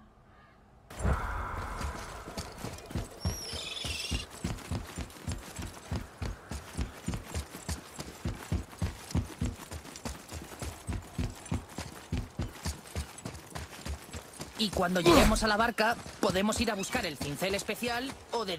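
Heavy footsteps run quickly over stone.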